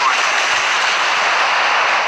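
Shells splash into the sea.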